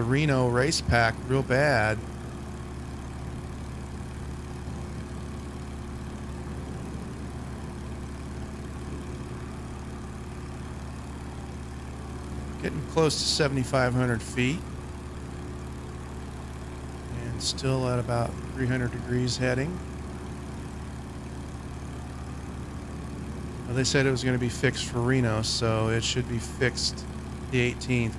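A small plane's engine drones steadily.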